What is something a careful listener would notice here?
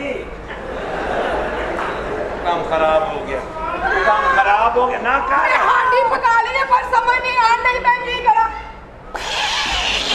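A man speaks loudly and with animation.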